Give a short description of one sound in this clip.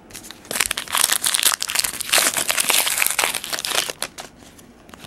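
Hands flip and shuffle through a stack of trading cards.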